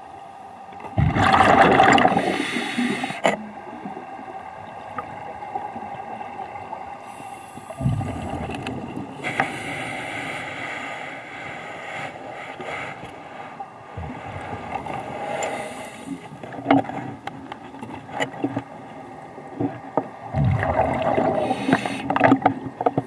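Scuba bubbles gurgle and rumble in bursts underwater.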